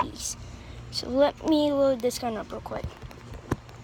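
A boy speaks close to a phone's microphone with animation.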